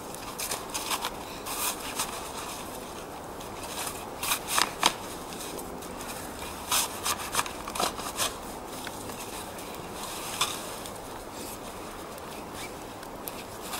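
Snow crunches and squeaks.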